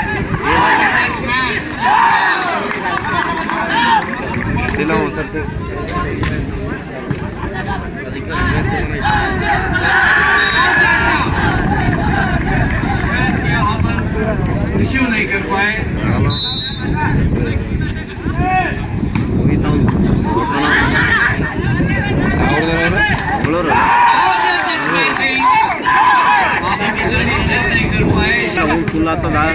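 Young men on the court shout and call out to each other with excitement.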